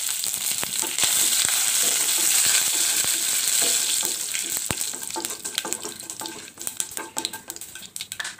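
A wooden spatula stirs and scrapes in a metal pan.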